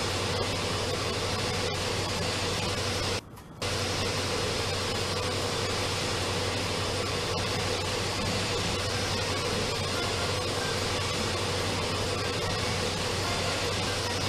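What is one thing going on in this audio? A pressure washer sprays water in a steady, loud hiss.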